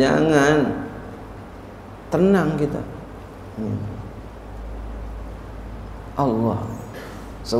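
An elderly man speaks slowly into a microphone, heard through a loudspeaker in an echoing hall.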